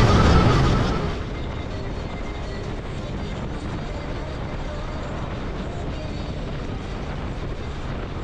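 A motorcycle cruises along a highway with a steady engine hum and road noise.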